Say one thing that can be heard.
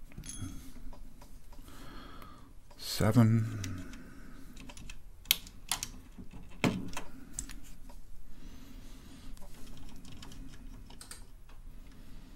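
A plastic keycap snaps into place.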